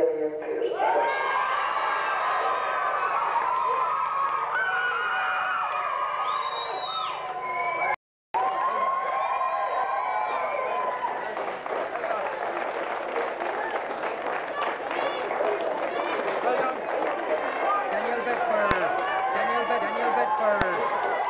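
A crowd of children chatter and shout excitedly close by.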